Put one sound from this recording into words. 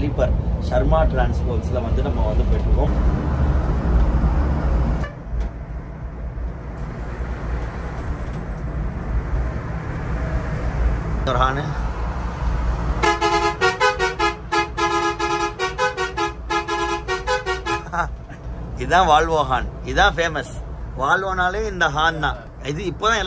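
A bus engine hums low and steady while driving.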